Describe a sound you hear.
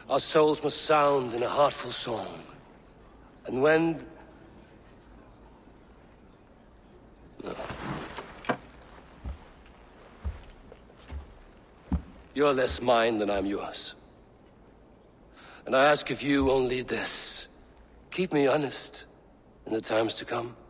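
A man speaks calmly and warmly, close by.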